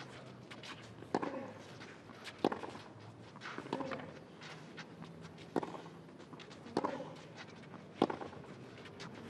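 Tennis players' shoes slide and scuff on clay.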